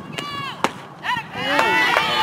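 A bat cracks sharply against a softball.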